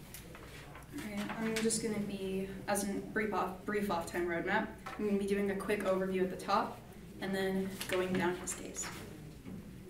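A young woman speaks clearly and steadily.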